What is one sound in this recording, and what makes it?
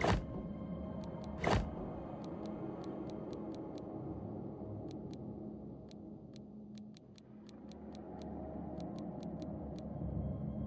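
Soft menu clicks tick at a steady pace.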